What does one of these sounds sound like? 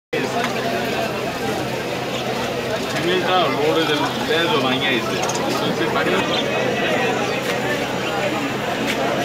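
Parrots chirp and squawk close by.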